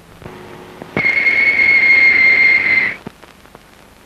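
A pressure cooker whistles loudly and shrilly.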